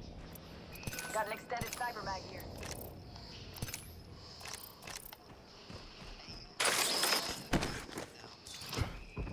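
Short clicks and clinks sound as items are picked up in a video game.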